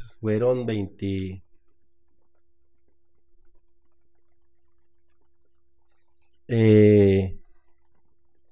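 A woman speaks calmly into a microphone, with long pauses.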